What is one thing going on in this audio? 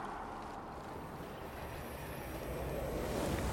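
Water splashes and sloshes around people wading.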